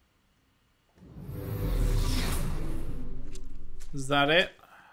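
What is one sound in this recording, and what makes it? A shimmering electronic whoosh swells and then cuts off.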